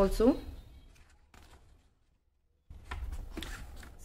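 Paper pages rustle as they turn.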